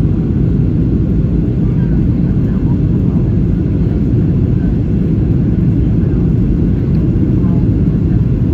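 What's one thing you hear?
Jet engines roar with a steady, deep rumble inside an airliner cabin.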